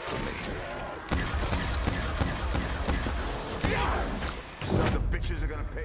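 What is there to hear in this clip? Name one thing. A sci-fi energy gun fires bursts with loud zaps.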